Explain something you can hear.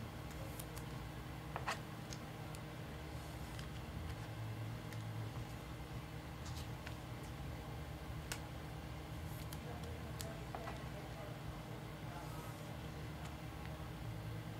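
Plastic card cases click and rattle in hands.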